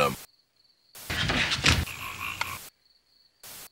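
Television static hisses.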